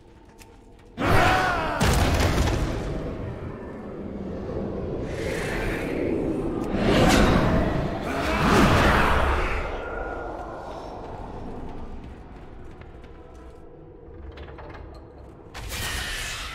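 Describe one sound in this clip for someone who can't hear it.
Game sound effects whoosh and boom.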